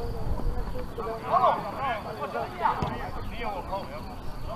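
Men shout to each other across an open pitch.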